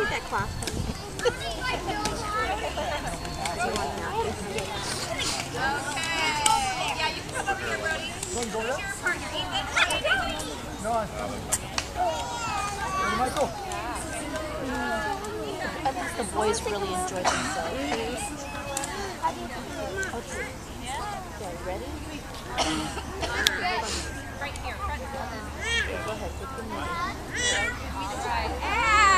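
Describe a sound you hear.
Young children chatter and shout outdoors.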